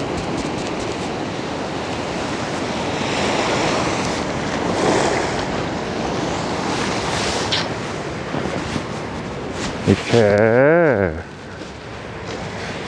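Waves break and wash onto a pebble beach, heard outdoors.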